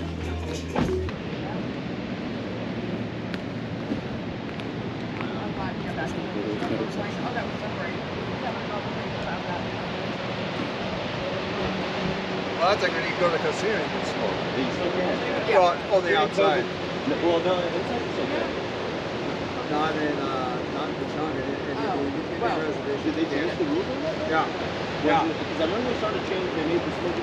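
Ocean waves break and wash steadily onto a shore outdoors.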